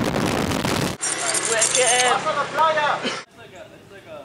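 A young man shouts loudly and excitedly close by.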